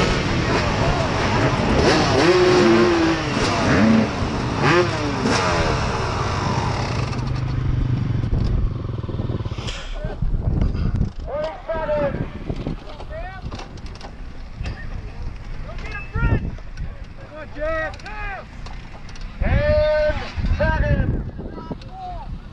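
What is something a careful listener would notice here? Several motorcycle engines idle and rev loudly close by, rising and falling in pitch.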